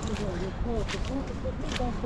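Footsteps crunch on wet snow.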